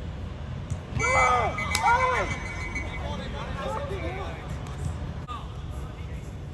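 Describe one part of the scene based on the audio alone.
Men shout across an open outdoor pitch.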